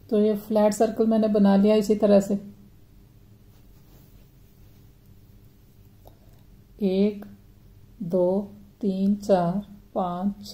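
Soft yarn rustles as hands handle crocheted fabric.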